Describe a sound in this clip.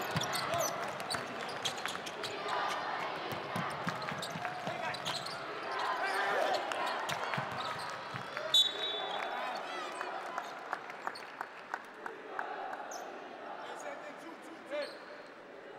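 A crowd murmurs and cheers in a large arena.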